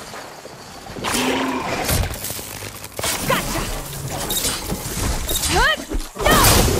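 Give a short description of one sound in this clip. A mechanical beast screeches and clanks close by.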